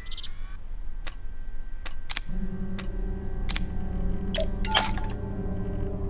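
Menu clicks tick sharply.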